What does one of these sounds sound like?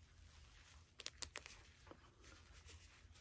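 Small metal parts click softly in a man's hands.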